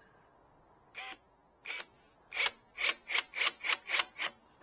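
A power driver buzzes in quick, repeated bursts while driving screws.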